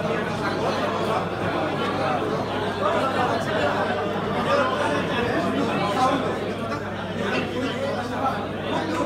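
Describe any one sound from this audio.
A crowd of men and women chatters loudly in a large echoing hall.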